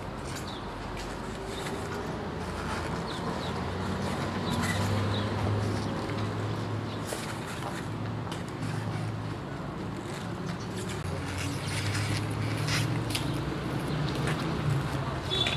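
Plastic containers clatter softly as they are stacked.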